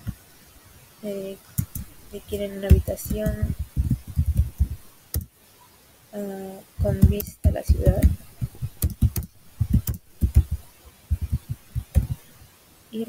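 A young woman speaks calmly and close into a microphone.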